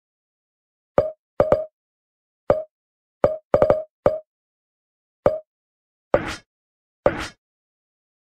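Short menu blips sound as options are scrolled.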